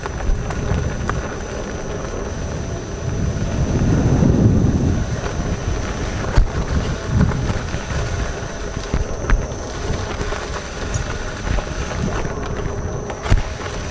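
An electric motor whines steadily.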